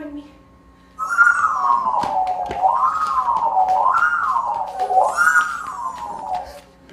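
Feet tap and shuffle on a stage floor.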